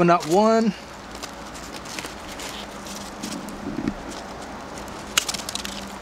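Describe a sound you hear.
Metal tweezers click softly as they pluck at pine needles.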